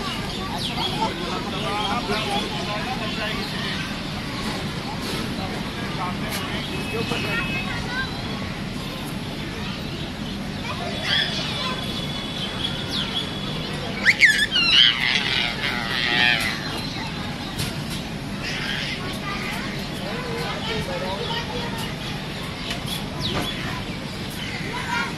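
Young children shout while they play.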